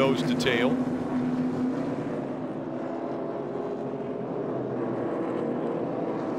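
Race car engines roar loudly as they speed past.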